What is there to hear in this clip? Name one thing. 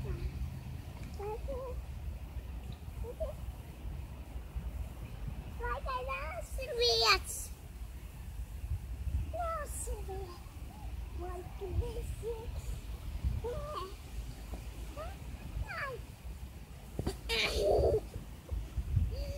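A young girl chatters and squeals excitedly nearby.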